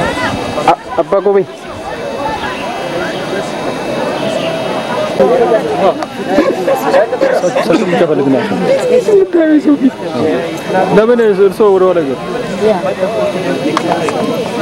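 A crowd of men and women chatter outdoors nearby.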